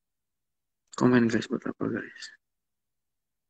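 A young man speaks briefly and quietly, close by.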